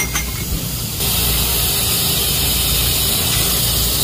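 A laser cutter hisses steadily as it cuts through a metal pipe.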